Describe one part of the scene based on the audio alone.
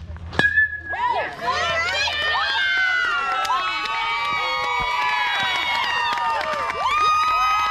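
A crowd of young people and adults cheers and shouts loudly outdoors.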